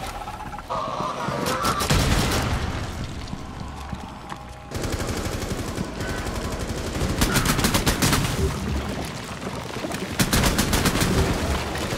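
A pistol fires quick shots.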